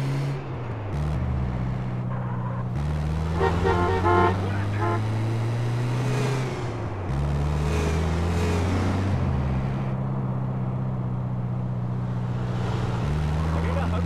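A truck engine hums steadily, changing pitch as it shifts gears.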